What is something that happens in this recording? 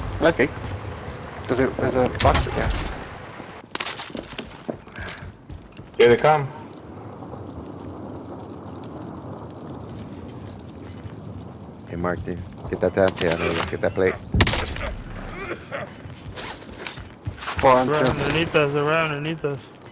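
A gun clicks and clatters as weapons are picked up and swapped.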